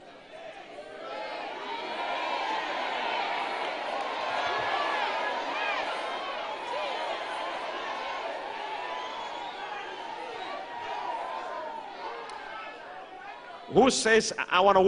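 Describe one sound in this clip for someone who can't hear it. A crowd murmurs and calls out together.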